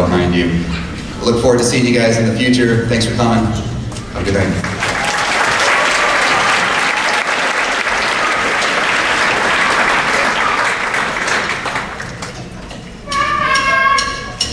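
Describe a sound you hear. A large band plays brass and saxophones with drums in an echoing hall.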